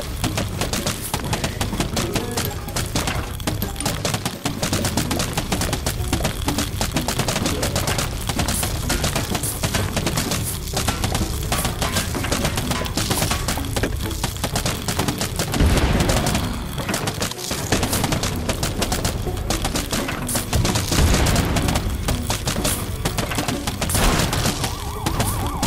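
Game melons thud and splat over and over in quick succession.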